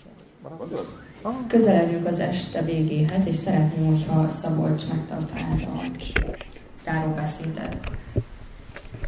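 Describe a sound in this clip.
A woman speaks into a microphone with animation, heard through loudspeakers in a hall.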